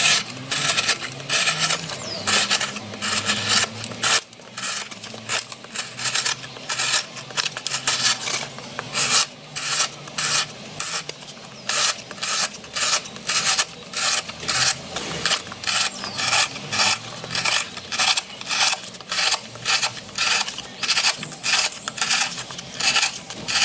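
Metal snips cut through cardboard with rapid crunching snips.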